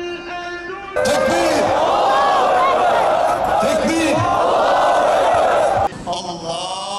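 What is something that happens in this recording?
A large crowd of protesters chants in unison outdoors.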